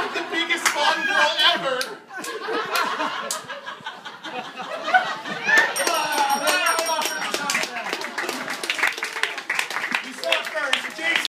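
Several adults talk and laugh nearby outdoors.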